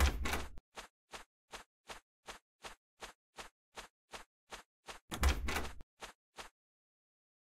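Footsteps patter quickly on grass.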